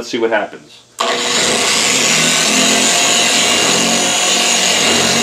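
An electric polisher whirs steadily.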